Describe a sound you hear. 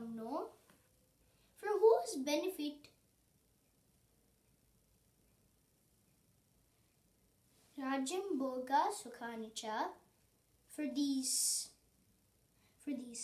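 A young boy speaks clearly and calmly close by, with pauses between phrases.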